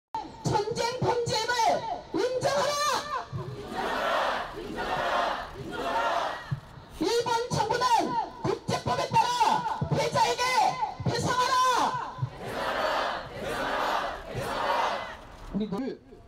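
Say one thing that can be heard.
A crowd of men and women chants loudly in unison outdoors.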